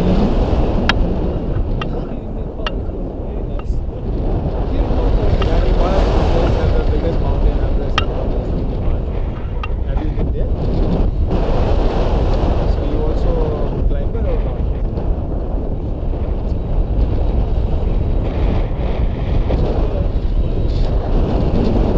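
Strong wind roars and buffets against a microphone, high up outdoors.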